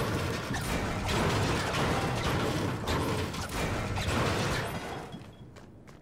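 A pickaxe smashes repeatedly into wooden furniture.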